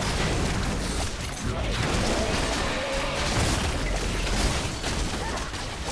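A huge monster roars.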